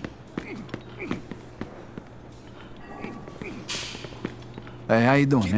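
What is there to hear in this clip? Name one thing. Fists thud against a punching bag.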